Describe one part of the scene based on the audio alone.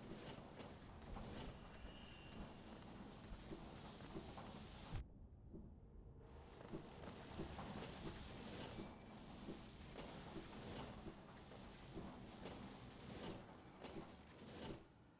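Light footsteps tap quickly and evenly.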